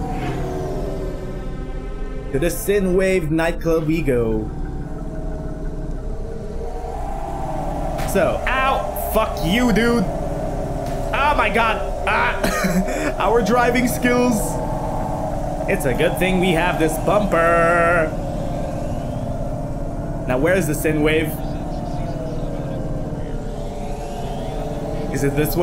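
A futuristic flying car's engine hums steadily.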